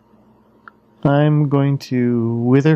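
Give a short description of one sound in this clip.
A retro computer game plays a loud warbling electronic tone.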